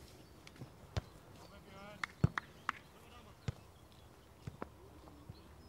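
A football is kicked with sharp thuds now and then.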